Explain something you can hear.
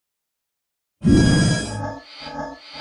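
A dinosaur roars.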